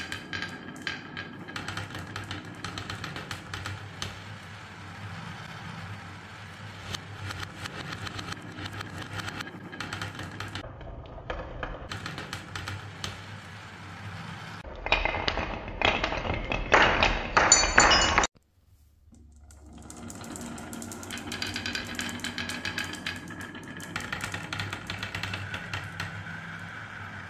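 Glass marbles roll and clatter along a wooden track.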